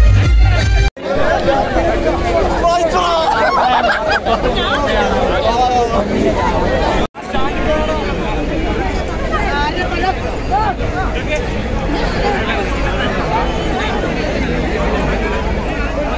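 A large crowd of men shouts and chatters loudly outdoors.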